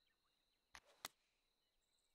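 A golf club strikes a ball with a short, sharp click.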